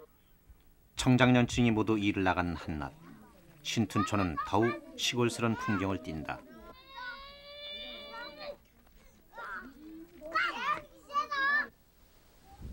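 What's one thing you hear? Children shout and chatter as they play outdoors.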